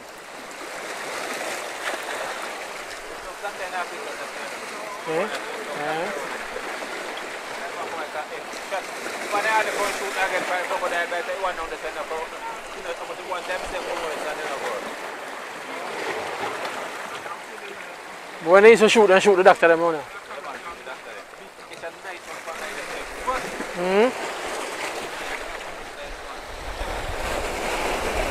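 Waves wash and splash against rocks steadily.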